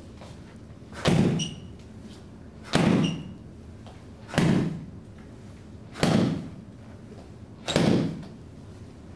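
Palm strikes thump hard into a handheld striking pad.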